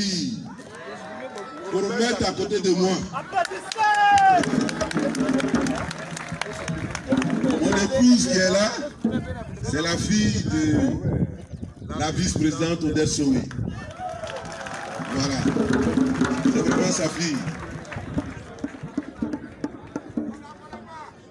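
A man speaks with animation into a microphone, heard through loudspeakers outdoors.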